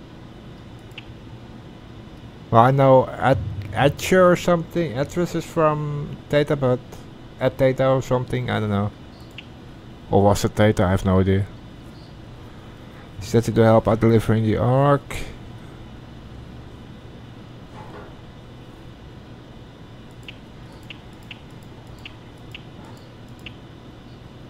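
Soft interface blips sound as menu items are selected.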